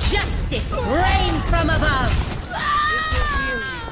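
Explosions thump and boom.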